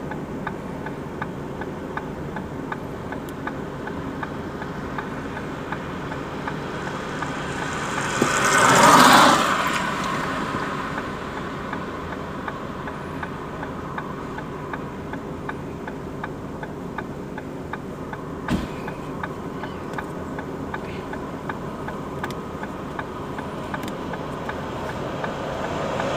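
A car engine idles steadily, heard from inside the car.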